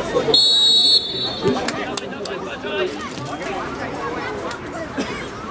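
Players shout across an open field.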